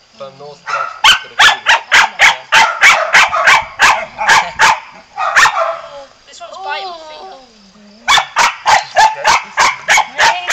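Dogs bark rapidly and loudly, close by.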